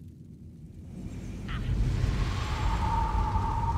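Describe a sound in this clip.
A magical flame bursts up with a rising roar.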